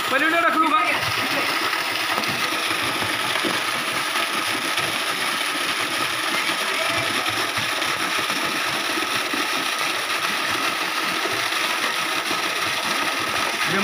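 A waterfall pours and splashes steadily into a pool.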